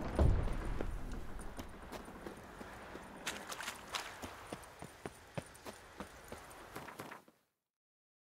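Footsteps crunch steadily on stone.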